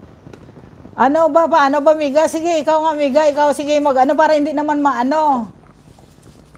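A middle-aged woman sings loudly close to a microphone.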